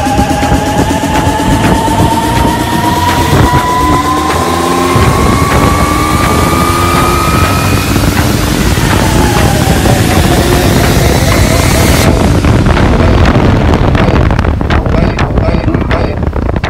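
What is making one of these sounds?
A motorcycle engine runs and revs up.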